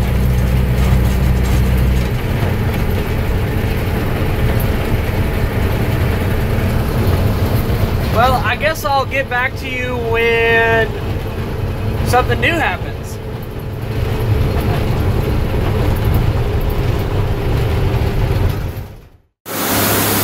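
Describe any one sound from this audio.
Tyres crunch over a gravel road.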